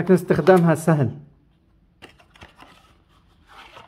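A small cardboard box is set down on a metal tray with a light tap.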